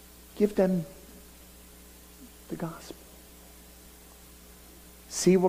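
A middle-aged man speaks in short phrases through a headset microphone.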